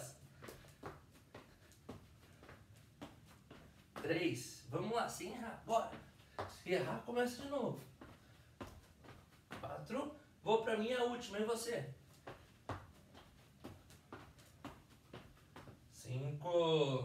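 Shoes tap and shuffle on a hard floor.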